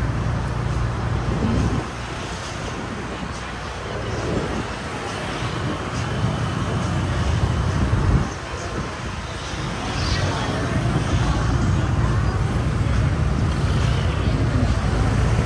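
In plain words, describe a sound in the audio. Motorbike engines hum and rumble past on a busy street.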